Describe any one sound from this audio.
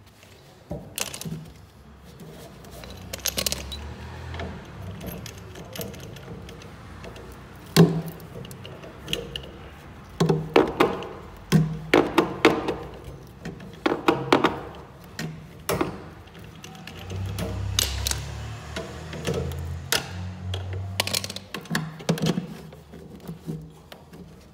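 Gloved hands knock and rattle against wires and metal parts.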